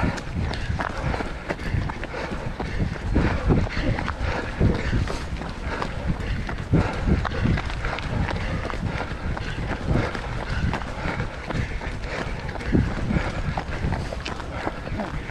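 Running footsteps crunch steadily on a gravel path.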